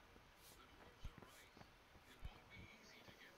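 Footsteps thud slowly on hard ground.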